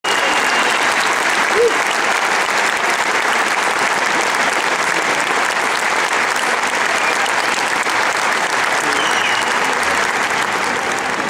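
A large crowd applauds in an echoing arena.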